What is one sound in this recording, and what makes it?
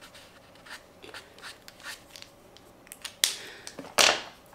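A paint marker scratches softly across paper.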